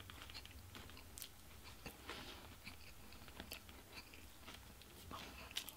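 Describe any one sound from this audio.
A young man licks and smacks his fingers.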